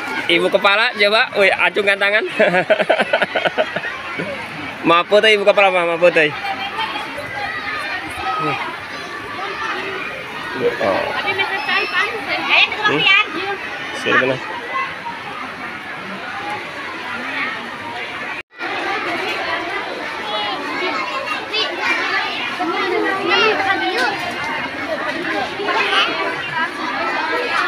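A crowd of women and children chatters all around outdoors.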